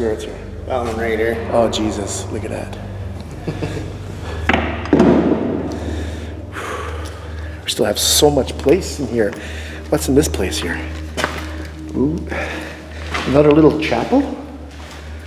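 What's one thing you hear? A man talks calmly, close to the microphone.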